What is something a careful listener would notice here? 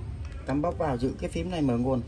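A finger presses and taps on a small device.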